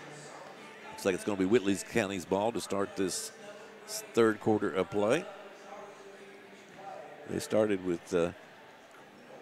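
A man speaks over a loudspeaker in a large echoing hall.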